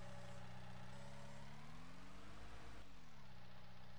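A loader's engine revs up briefly and then drops back to idle.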